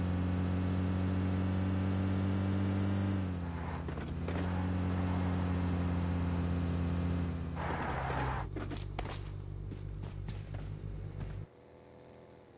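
An off-road vehicle engine drones while driving.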